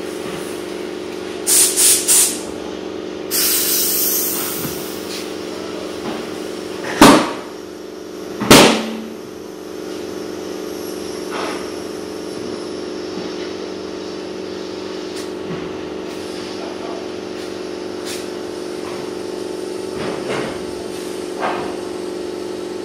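A tyre changer machine hums steadily.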